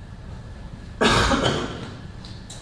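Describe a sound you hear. An older man coughs into his hand.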